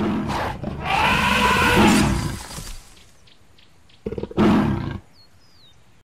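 A magical blast crackles and whooshes in bursts.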